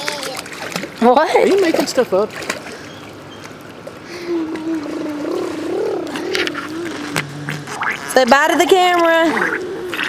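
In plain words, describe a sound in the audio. A small child squeals and babbles close by.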